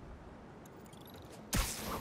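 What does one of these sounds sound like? Footsteps run across a gravelly rooftop.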